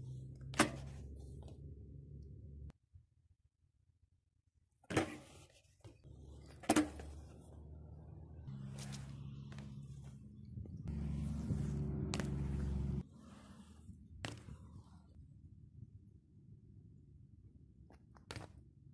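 A bike lands with a sharp clack on concrete.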